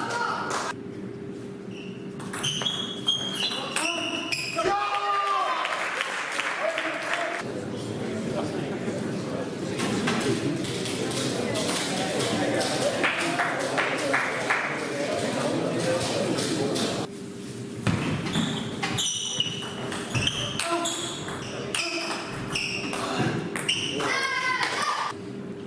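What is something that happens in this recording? A table tennis ball clicks sharply back and forth off bats and the table in a large echoing hall.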